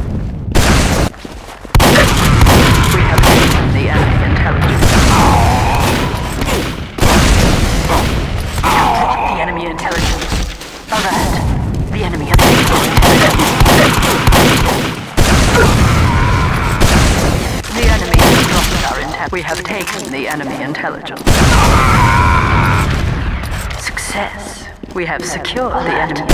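Rocket launcher shots boom repeatedly.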